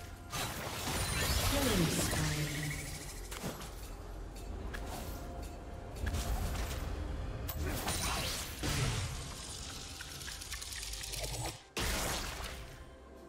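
Magic blasts and sword strikes clash in a fast video game battle.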